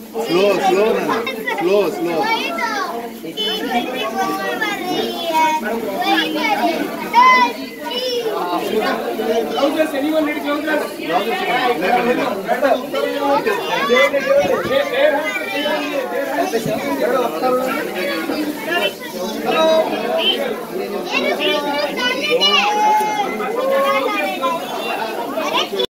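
A crowd of children and adults chatter excitedly close by.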